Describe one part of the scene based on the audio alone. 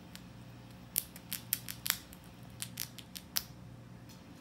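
A grey squirrel gnaws a nut shell with sharp crunching clicks.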